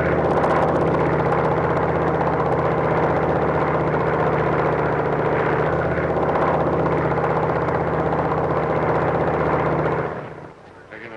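A propeller flying boat drones in flight overhead.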